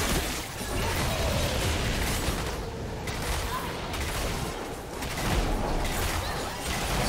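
Spell effects crackle, whoosh and burst in a busy fantasy battle.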